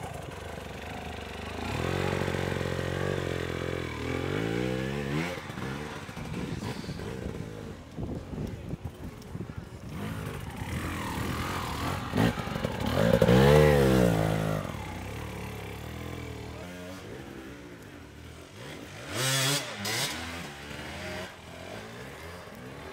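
An enduro dirt bike engine revs hard, climbing a steep slope.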